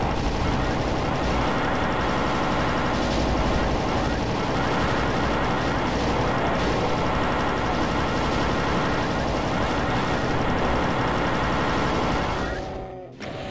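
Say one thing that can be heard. A plasma gun fires rapid crackling electric bursts.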